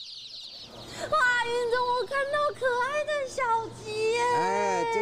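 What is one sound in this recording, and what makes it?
A young woman speaks with lively animation, close by.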